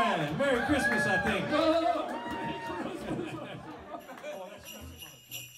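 A band plays with electric guitar and drums.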